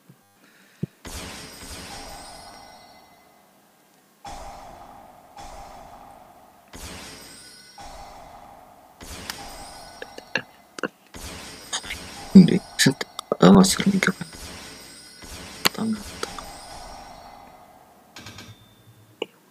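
Electronic game sound effects whoosh and chime as cards are played.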